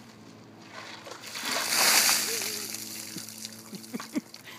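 Icy water splashes down loudly.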